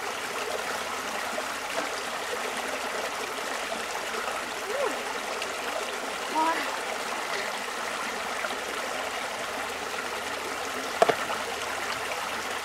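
Shallow stream water trickles and burbles steadily.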